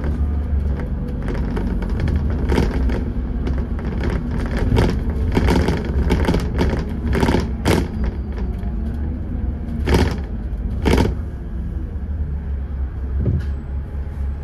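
A bus body rattles and knocks as it drives over the road.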